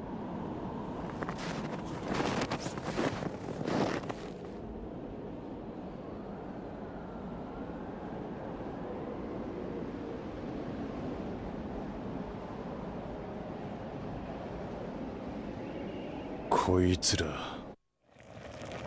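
Wind howls steadily through a snowstorm.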